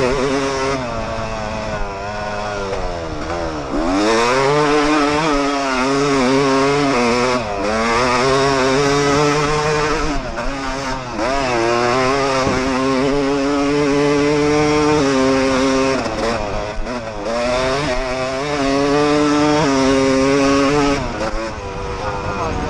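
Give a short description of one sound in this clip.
A dirt bike engine revs hard close by, rising and falling as gears shift.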